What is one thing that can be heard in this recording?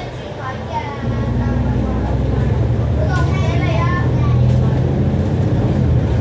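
Another diesel double-decker bus passes close by.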